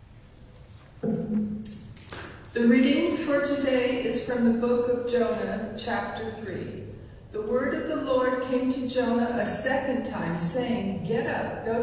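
A woman reads aloud through a microphone in a large echoing room.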